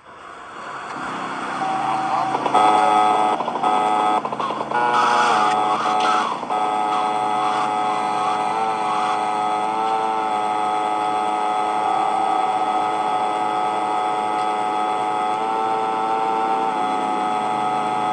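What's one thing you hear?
A scooter engine buzzes steadily.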